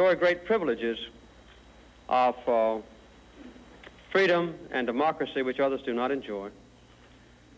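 A middle-aged man speaks calmly and deliberately into a microphone.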